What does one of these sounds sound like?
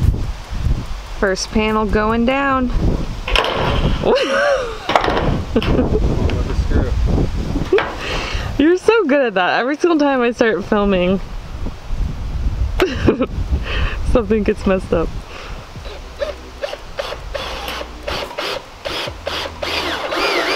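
A cordless drill whirs as it drives screws into a metal roof.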